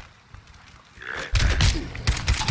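A creature snarls and growls while attacking.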